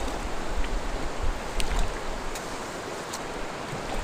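A paddle dips and pulls through water.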